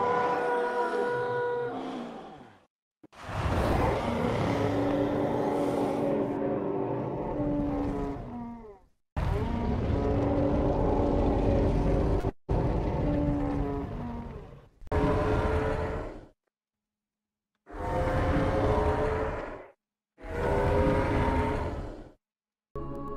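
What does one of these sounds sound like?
A huge beast bellows in long, deep, wavering calls.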